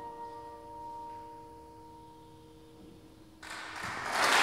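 A piano chord rings out and fades.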